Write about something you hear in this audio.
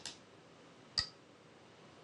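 A game stone clicks onto a wooden board.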